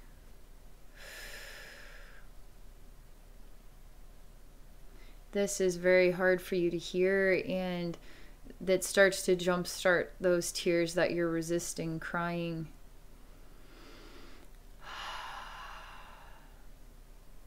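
A young woman breathes in and out slowly and deeply.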